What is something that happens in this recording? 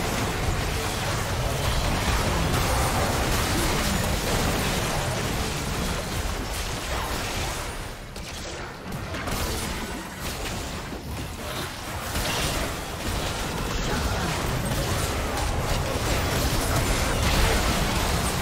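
Game spell blasts and weapon hits crackle in a fast battle.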